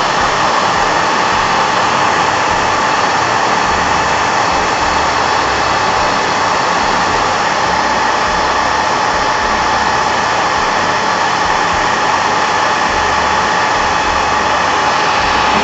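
A heat gun blows with a loud, steady whirring hiss.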